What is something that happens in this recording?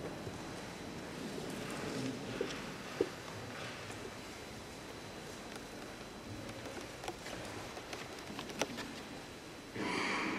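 A harp is plucked softly, notes ringing in a large echoing hall.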